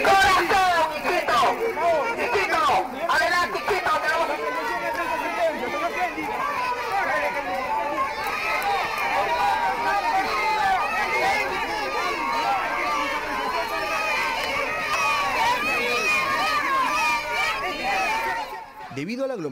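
A crowd of men and women shouts and clamours close by.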